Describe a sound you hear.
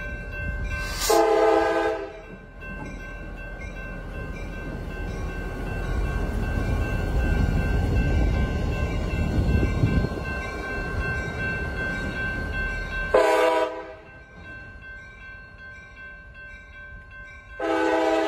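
A locomotive horn blasts loudly several times.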